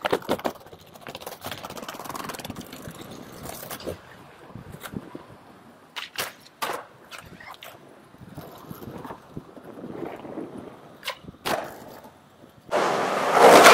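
Skateboard wheels roll and rattle over paving stones.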